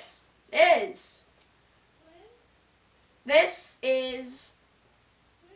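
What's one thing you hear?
A young boy speaks with animation, close by.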